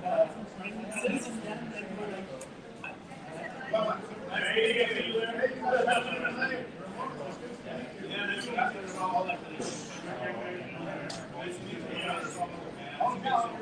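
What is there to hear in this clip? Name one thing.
A middle-aged man talks loudly and with animation to a group.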